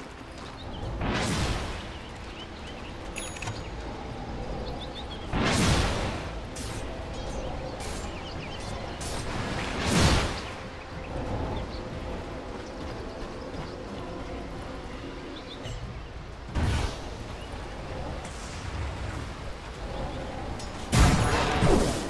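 Magic spells whoosh and burst loudly now and then.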